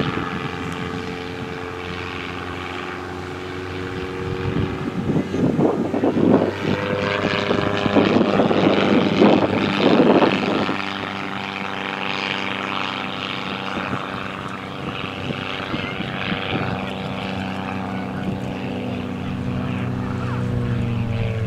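A single-engine propeller aerobatic plane drones overhead, its engine pitch shifting as it climbs and dives.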